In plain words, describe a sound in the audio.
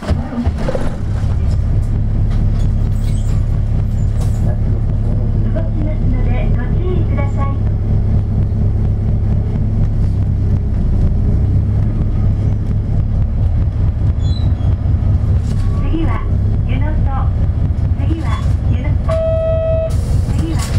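A vehicle engine rumbles low and steady from inside the car.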